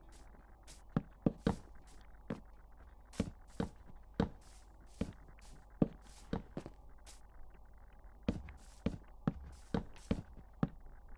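Wooden blocks knock into place in quick, uneven taps.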